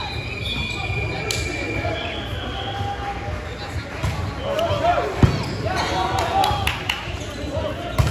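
Sneakers squeak on the court floor.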